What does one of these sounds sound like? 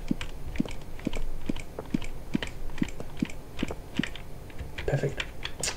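Footsteps clatter rhythmically up a wooden ladder.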